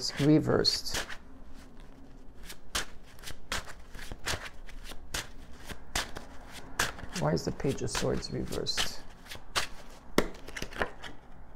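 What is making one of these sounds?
Cards riffle and snap as a deck is shuffled.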